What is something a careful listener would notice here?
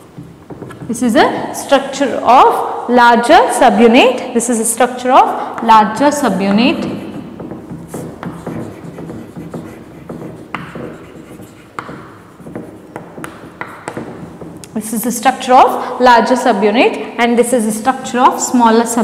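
A young woman speaks clearly and with animation, close by.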